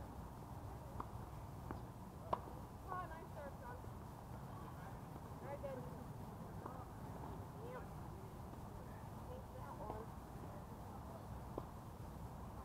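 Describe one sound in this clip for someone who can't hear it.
Tennis rackets strike a ball with sharp pops, now and then.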